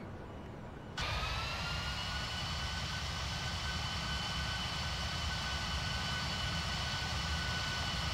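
A jet airliner's engines whine and roar steadily.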